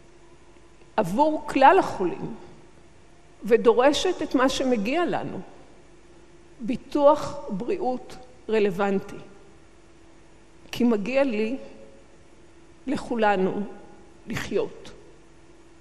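An elderly woman speaks calmly through a microphone in a large hall, pausing between phrases.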